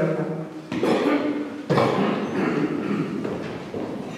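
High heels click on a wooden stage floor.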